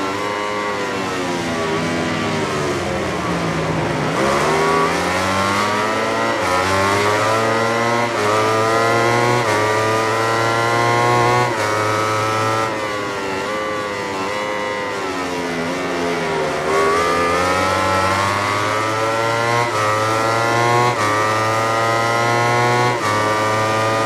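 A motorcycle engine screams at high revs, dropping in pitch when braking for corners and rising again as it accelerates through the gears.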